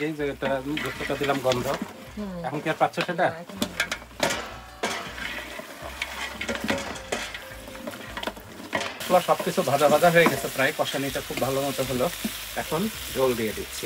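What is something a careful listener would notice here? A wooden spoon stirs and scrapes a pot of stew.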